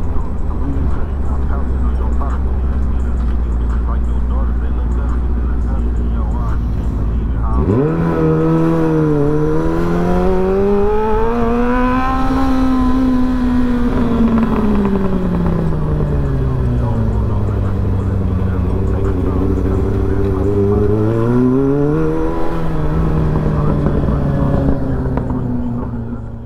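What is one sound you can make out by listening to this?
A motorcycle engine hums low, then revs up and down close by.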